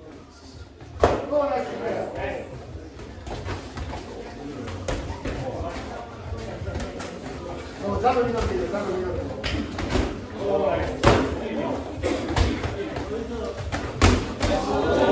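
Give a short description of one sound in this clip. Boxing gloves thud against gloves and pads in quick blows.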